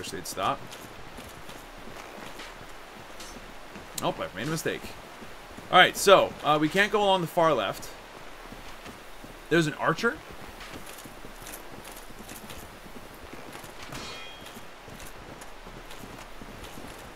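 Armoured footsteps thud and clink steadily on soft ground.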